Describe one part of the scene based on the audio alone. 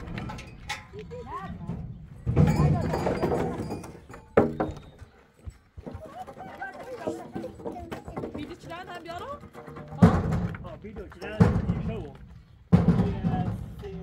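Wooden planks clatter and knock as they are moved.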